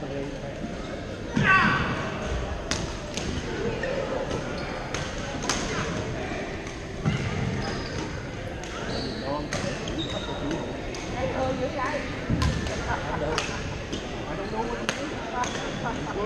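Badminton rackets hit shuttlecocks with sharp pops in a large echoing hall.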